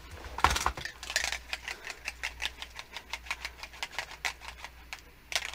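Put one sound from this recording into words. A marker scratches on paper.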